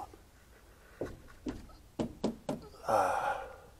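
Hands knock and click against a van's door.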